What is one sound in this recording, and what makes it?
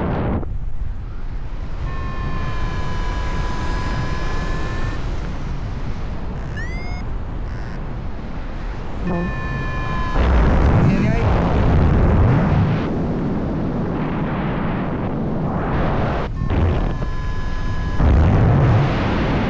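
Wind rushes and buffets loudly, as if outdoors high in the open air.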